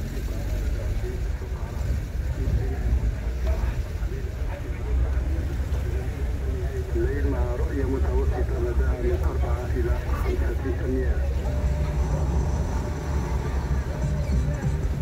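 Tyres roll on pavement.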